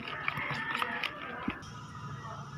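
A spoon stirs thick batter with a soft squelch.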